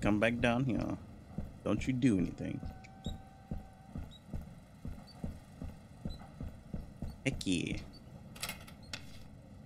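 Footsteps clang steadily down metal stairs.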